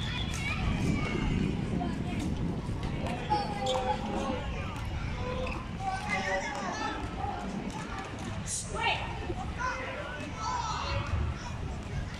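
Children call out and chatter across an open outdoor field.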